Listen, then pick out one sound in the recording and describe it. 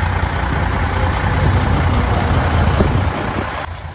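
A diesel truck engine revs and roars as the truck pulls away.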